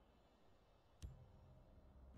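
A card snaps down with a sharp click.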